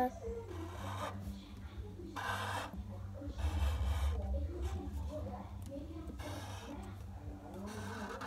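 A felt-tip pen scratches across paper.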